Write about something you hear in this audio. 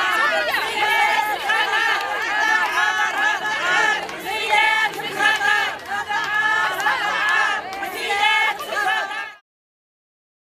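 A crowd of women chant loudly together outdoors.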